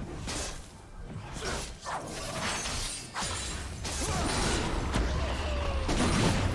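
Video game spells whoosh and blast during a fight.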